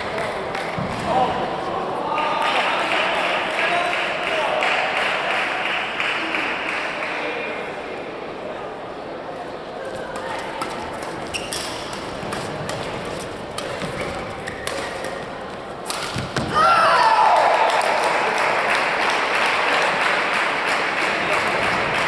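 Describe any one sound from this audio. A crowd of spectators chatters and calls out throughout.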